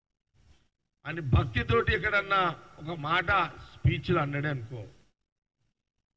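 An older man speaks forcefully into a microphone.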